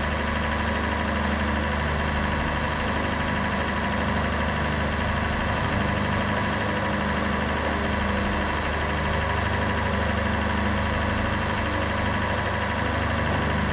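A racing car engine idles with a steady low hum.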